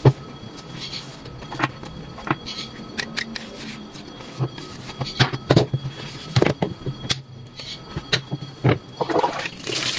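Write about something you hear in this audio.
A sponge scrubs against a panel.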